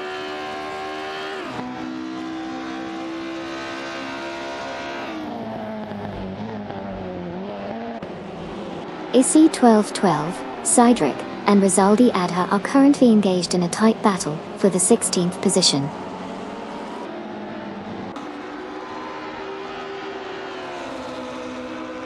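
A racing car engine roars close by, revving up and down as gears change.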